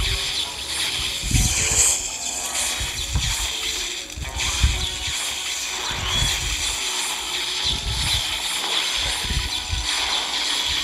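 Cartoonish game sound effects pop and thump repeatedly.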